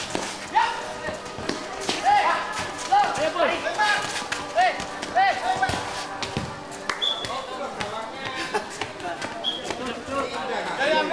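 Sneakers squeak and scuff on hard ground.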